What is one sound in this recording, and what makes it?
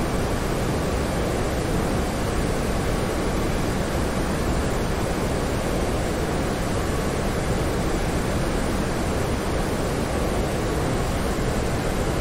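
Wind rushes loudly and steadily past an aircraft cockpit.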